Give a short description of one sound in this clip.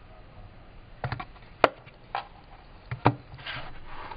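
A cardboard box lid taps shut on a hard surface.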